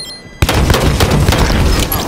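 Gunfire bursts out in quick shots.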